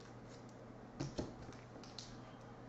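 Plastic card cases knock and click as they are handled.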